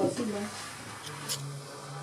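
A metal spoon scrapes against a stone mortar.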